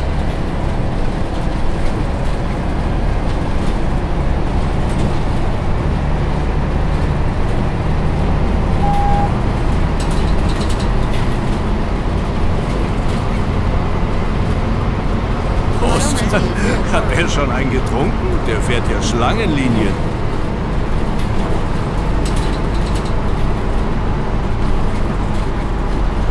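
A diesel city bus engine drones while driving along a road.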